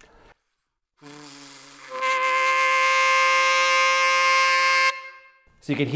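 A saxophone plays a single sustained low note.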